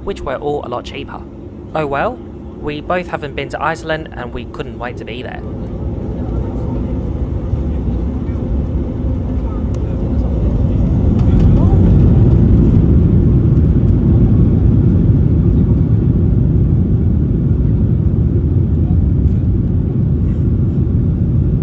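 Jet engines roar louder and louder as an airliner speeds up along a runway.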